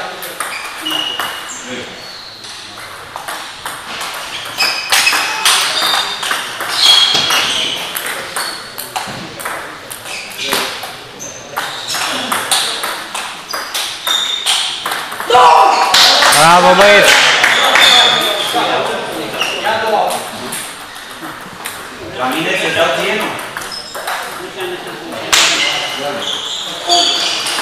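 A ping-pong ball clicks back and forth against paddles and a table in an echoing hall.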